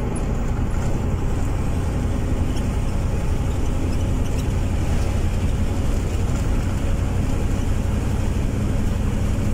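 Tyres roll on asphalt with a steady rumble.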